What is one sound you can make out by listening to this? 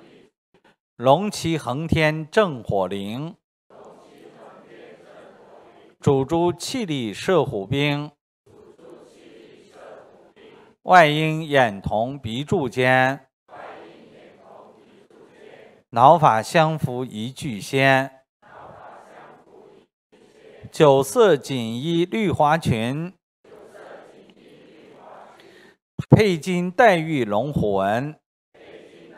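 A middle-aged man reads aloud through a microphone in loud bursts, with short pauses between.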